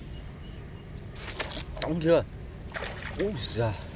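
A fish splashes at the surface of the water.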